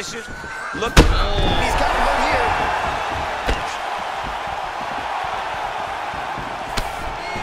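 Heavy punches land with sharp thuds.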